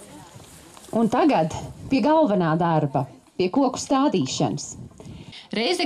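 A woman speaks loudly through a microphone and loudspeaker outdoors.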